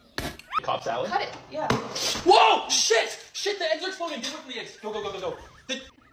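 A young woman laughs and shrieks.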